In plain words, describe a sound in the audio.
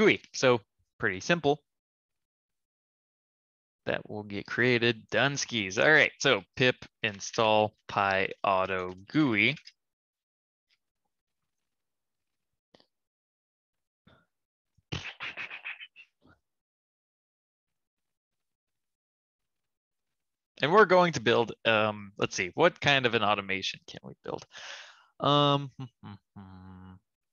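A man talks calmly and closely into a microphone, with pauses.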